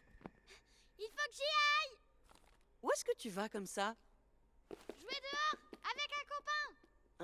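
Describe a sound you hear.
A young girl speaks with animation, close by.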